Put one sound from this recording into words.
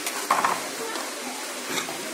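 A sanding block rubs against wood.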